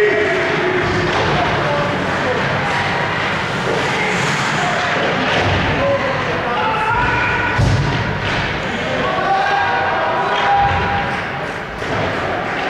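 Skates scrape across ice in a large echoing rink.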